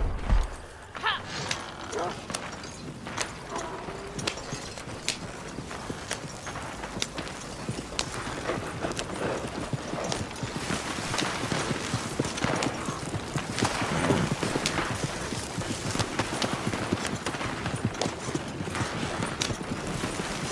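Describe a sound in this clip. Wooden wagon wheels rattle and creak over rough ground.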